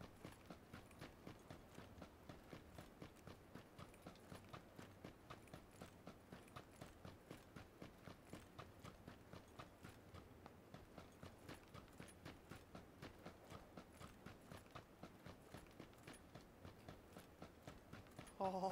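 Footsteps crunch quickly and steadily over dry, sandy ground.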